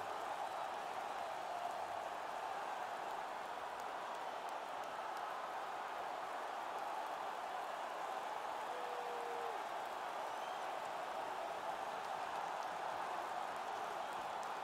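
A crowd murmurs steadily in a large arena.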